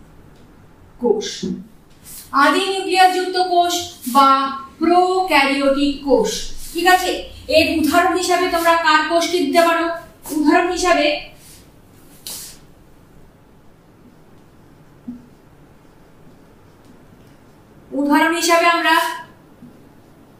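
A woman speaks calmly and clearly nearby, in short bursts.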